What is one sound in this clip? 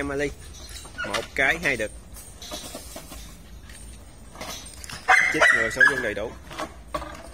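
Dogs bark and yelp close by.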